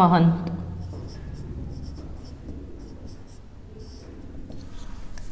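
A marker squeaks on a whiteboard in short strokes.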